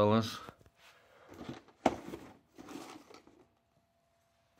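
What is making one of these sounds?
A cardboard box scrapes and bumps as it is handled.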